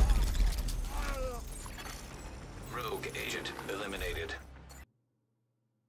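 A character's footsteps and gear rustle loudly in a game.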